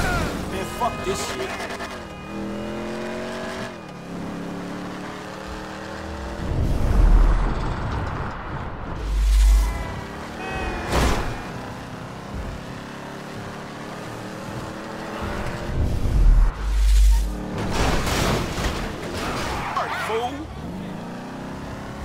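A car engine roars and revs, rising in pitch through each gear and dropping between shifts.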